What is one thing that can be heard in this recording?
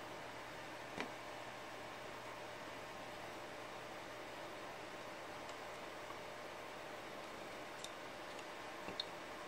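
Plastic keyboard keys click and clatter as they are fitted into place.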